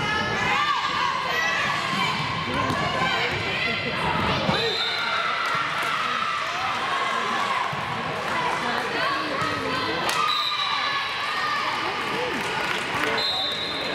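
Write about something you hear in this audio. Many young girls shout and cheer throughout in a large echoing hall.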